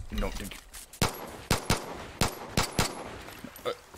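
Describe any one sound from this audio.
A pistol fires several sharp, loud shots.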